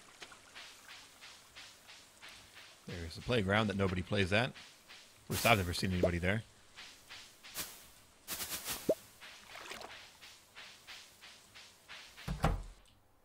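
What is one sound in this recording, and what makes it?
Soft footsteps patter steadily on grass.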